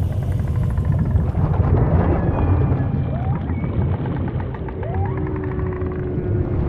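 Deep water rumbles low and steady underwater.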